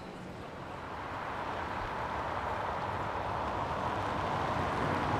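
A car engine approaches with a rising hum.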